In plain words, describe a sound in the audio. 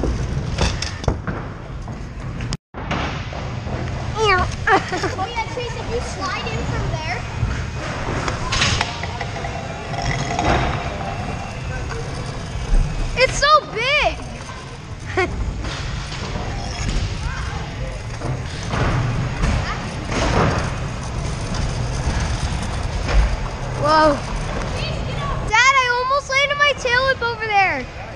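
Scooter wheels rumble and rattle over a hard surface.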